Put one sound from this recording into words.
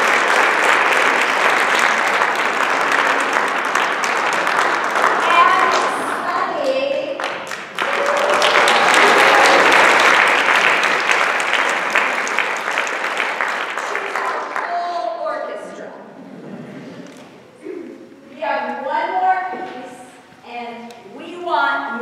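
A large choir sings together in an echoing hall.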